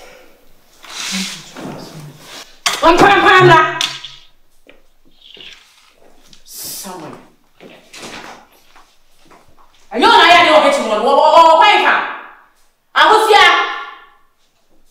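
A woman speaks angrily and loudly nearby.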